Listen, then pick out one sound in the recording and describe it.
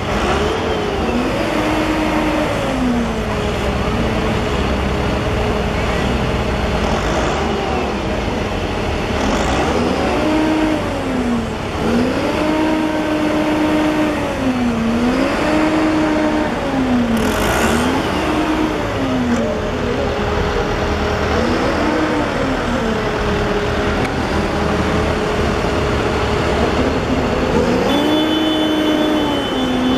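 Heavy tractor engines rumble as they drive slowly past.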